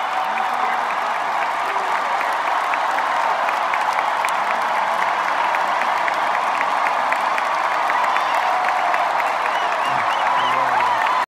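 A large crowd cheers and screams loudly in a huge echoing arena.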